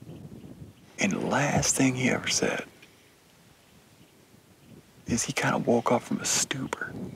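A young man speaks quietly and calmly, close by.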